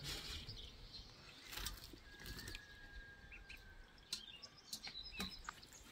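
Leafy greens tumble from a metal colander into a bowl.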